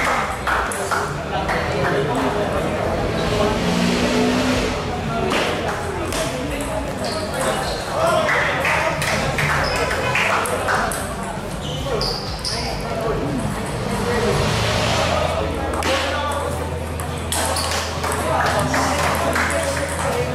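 Many voices chatter around a large, echoing hall.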